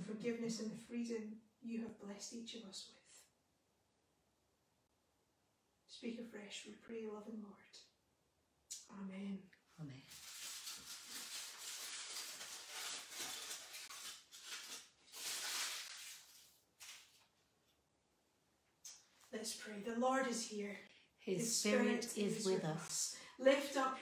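A woman speaks calmly and clearly nearby, pausing now and then.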